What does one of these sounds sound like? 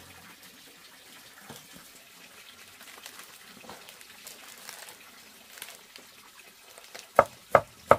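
Leaves rustle as they are gathered by hand.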